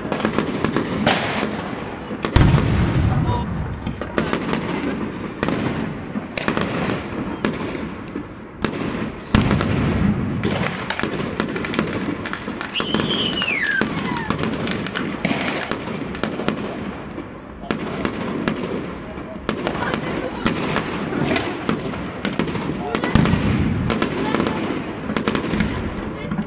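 Firework sparks crackle and pop.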